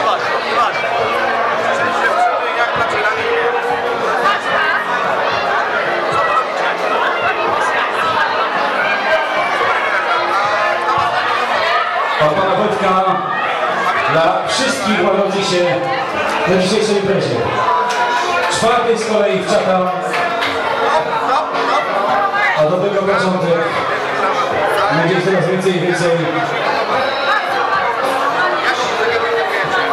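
A crowd chatters loudly in the background.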